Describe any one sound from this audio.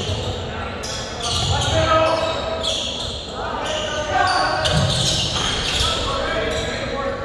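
Players and spectators call out in an echoing hall.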